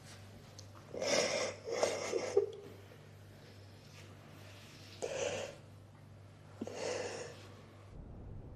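A woman sobs close by.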